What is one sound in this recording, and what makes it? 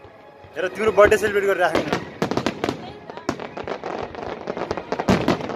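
Fireworks burst and crackle outdoors with loud bangs.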